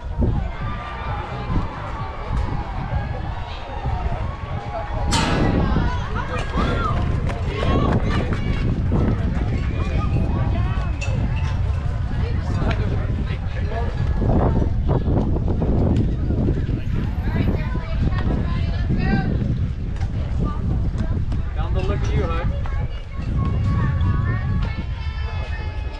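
Young players shout and call out across the field.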